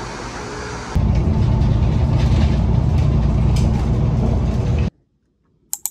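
A bus engine rumbles loudly.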